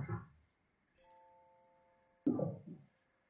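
A soft electronic chime rings out.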